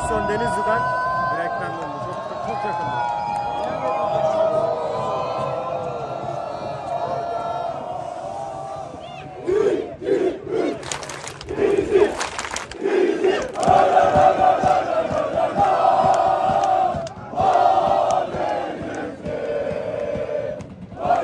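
A large crowd of fans chants and sings loudly in an open stadium.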